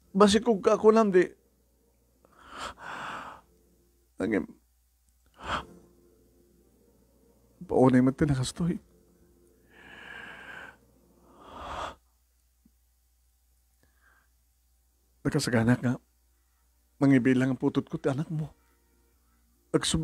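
An older man speaks calmly into a microphone, in short bursts with pauses.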